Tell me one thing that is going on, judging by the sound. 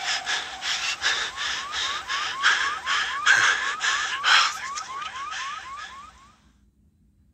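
A truck's alarm sounds in repeated rising chirps.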